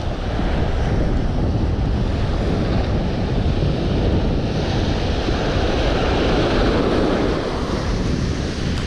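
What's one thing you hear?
Waves break and wash up on the shore.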